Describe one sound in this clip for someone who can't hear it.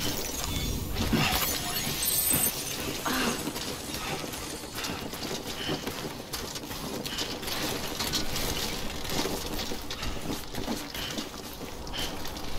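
Footsteps crunch on loose rocky ground.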